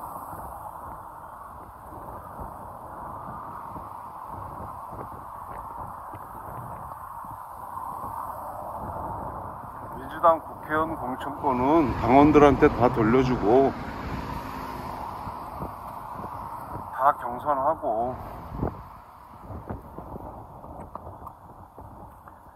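Traffic hums steadily on a nearby road.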